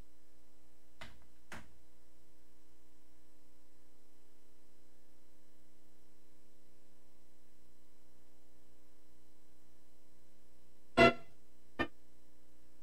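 A few short knocks sound on a desk close by.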